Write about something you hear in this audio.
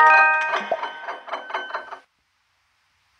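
A cheerful game jingle plays with bright chiming notes.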